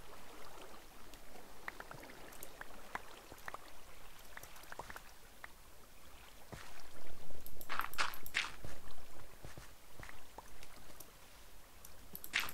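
Dirt blocks crunch softly as they are dug and placed, again and again.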